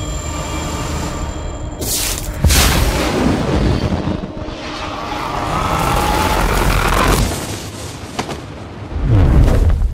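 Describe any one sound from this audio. A huge fiery blast roars.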